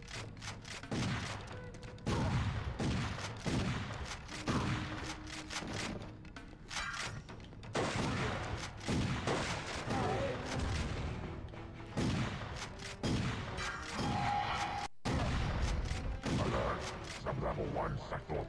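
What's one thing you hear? Shotgun blasts boom again and again.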